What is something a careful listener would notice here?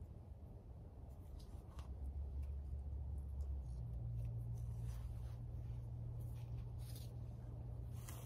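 A paper seed packet rustles in a hand.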